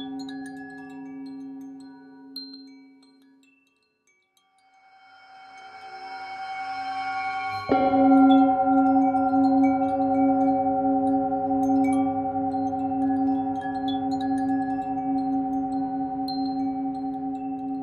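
A metal singing bowl hums with a deep, ringing tone that fades away and then swells up again.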